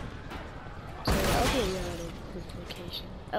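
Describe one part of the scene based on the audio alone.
A car crunches and thuds as it is slammed about.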